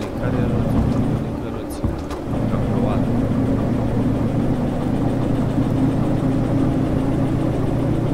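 Train wheels rattle over the tracks.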